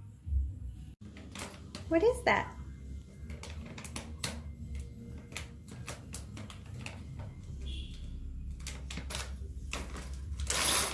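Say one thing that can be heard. Small objects click and clatter on a hard floor.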